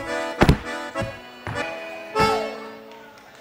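Boots stamp hard and fast on a wooden floor.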